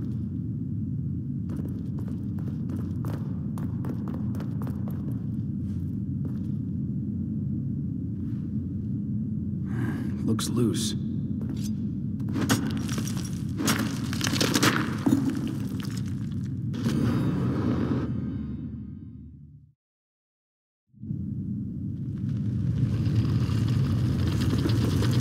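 A low rumbling drone hums steadily.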